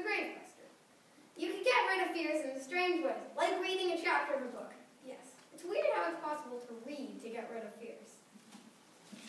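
A young girl speaks slowly and haltingly, a little distant.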